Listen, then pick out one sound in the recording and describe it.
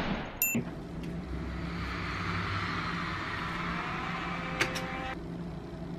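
Music with a swelling synth plays through a speaker.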